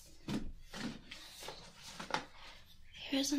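Folders rustle and scrape as they are slid into a fabric bin.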